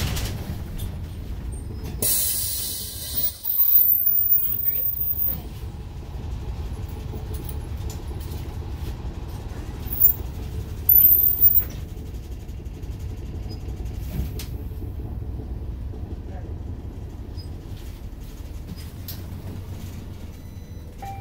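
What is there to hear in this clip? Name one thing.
A bus engine rumbles low and steady from inside the bus.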